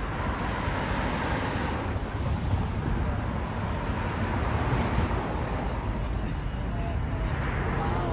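Cars drive past on a nearby street.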